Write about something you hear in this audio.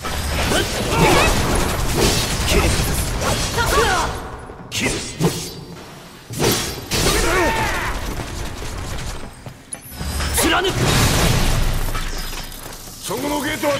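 Blades clash and metal clangs in a fast fight.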